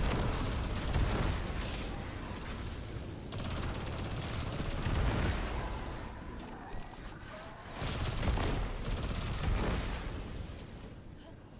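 Gunfire bursts and explosions boom in quick succession.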